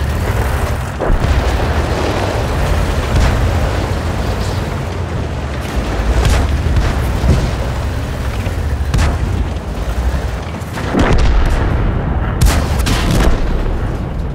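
Tank cannons fire with loud booming blasts.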